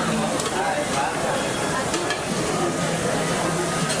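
Metal tongs clink against a serving dish.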